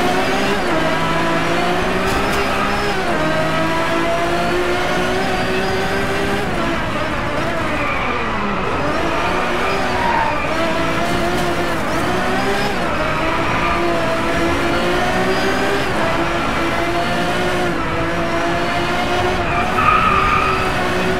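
A race car engine revs hard, dropping in pitch at each gear shift.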